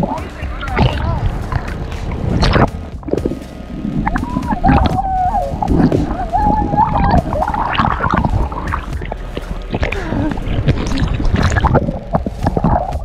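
Waves slosh and splash close by.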